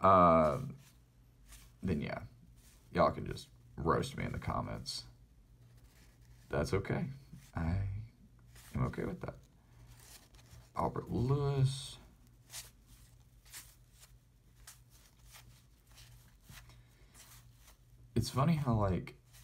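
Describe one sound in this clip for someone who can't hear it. Stiff paper cards flick and slide against each other as they are sorted by hand.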